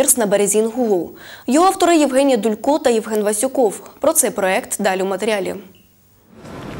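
A woman reads out the news calmly through a microphone.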